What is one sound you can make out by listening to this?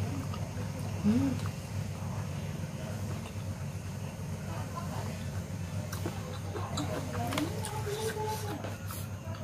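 A woman hums briefly with her mouth closed.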